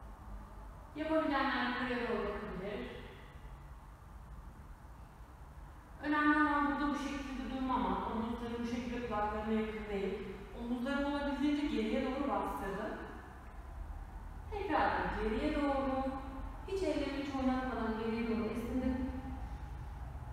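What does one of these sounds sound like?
A young woman speaks calmly, giving instructions in a quiet, echoing room.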